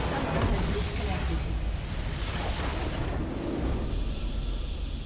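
A huge explosion roars and rumbles, then fades.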